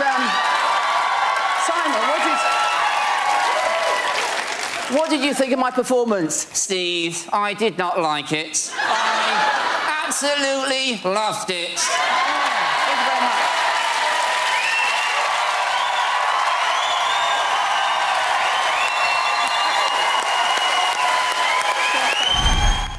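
A crowd laughs and cheers loudly in a large hall.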